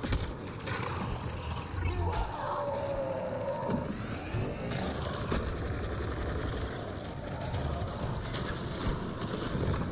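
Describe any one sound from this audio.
A large beast roars and snarls up close.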